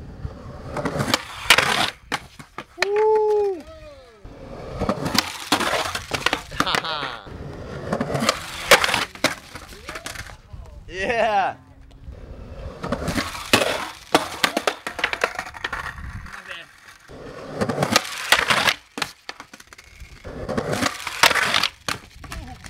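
A skateboard grinds loudly along a concrete ledge.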